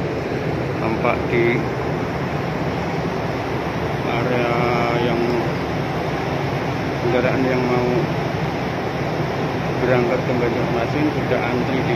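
Men talk outdoors.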